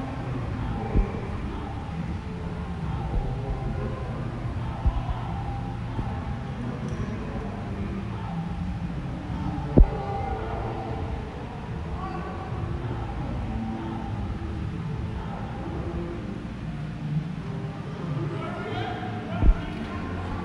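Bodies thump on springy trampoline mats.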